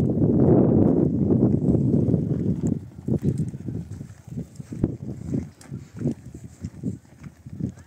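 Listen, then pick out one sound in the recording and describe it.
A wheelbarrow rattles as it rolls over rough ground.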